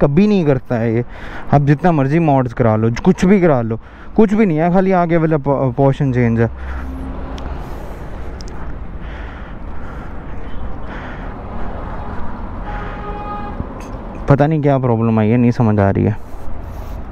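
A young man talks close to the microphone with animation.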